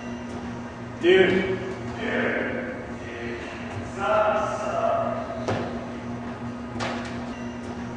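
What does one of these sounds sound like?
A young man speaks nearby.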